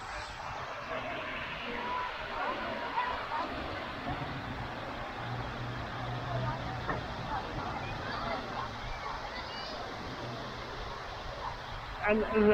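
Children and adults chatter faintly outdoors nearby.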